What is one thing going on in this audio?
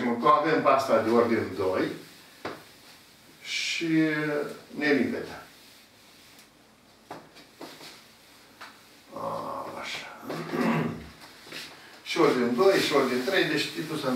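An elderly man speaks calmly, as if explaining.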